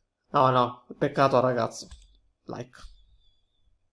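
A young man speaks with animation into a close microphone.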